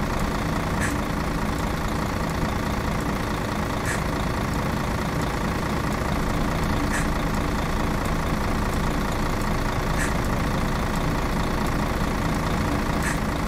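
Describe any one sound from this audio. A bus engine rumbles steadily at low speed.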